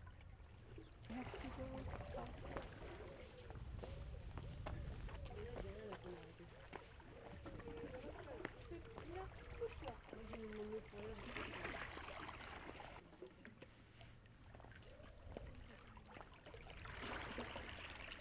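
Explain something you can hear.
Calm sea water laps gently against rocks.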